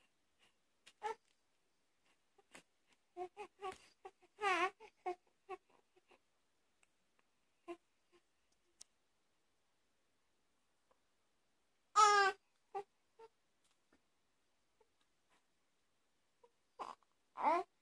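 A baby coos and babbles softly up close.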